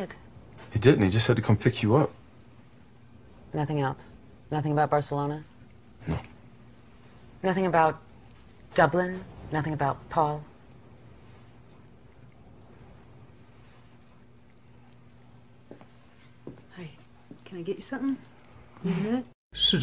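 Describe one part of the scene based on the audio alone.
A young woman talks calmly, close by.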